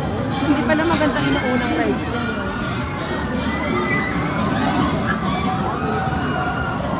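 A crowd of people chatter nearby outdoors.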